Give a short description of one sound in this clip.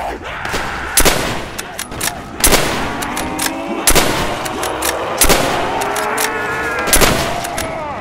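Gunshots fire one at a time, loud and close, with a short echo.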